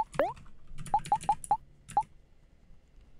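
Short electronic menu blips chirp in quick succession.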